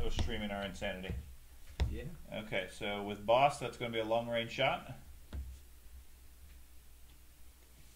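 A plastic ruler taps and slides on a tabletop game mat.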